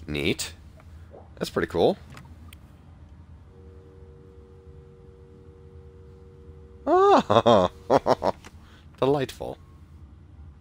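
A young man speaks into a phone.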